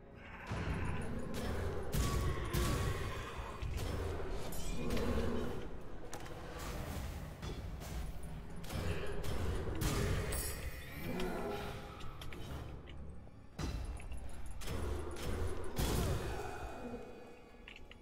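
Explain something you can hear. Sword slashes whoosh and strike in quick bursts.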